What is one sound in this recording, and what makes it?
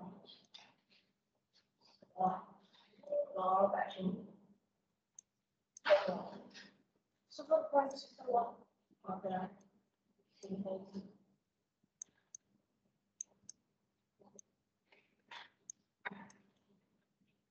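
A man speaks calmly through an online call, explaining slowly with pauses.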